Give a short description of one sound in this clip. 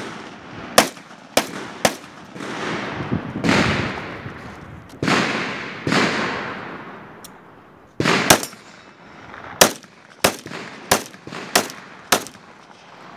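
A gun fires sharp shots outdoors, each shot echoing across open hills.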